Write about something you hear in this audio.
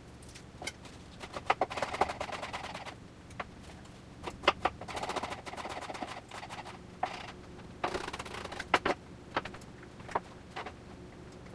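A knife chops on a wooden cutting board with quick taps.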